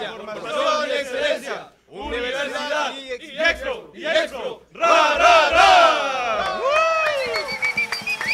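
A group of young men sings loudly together.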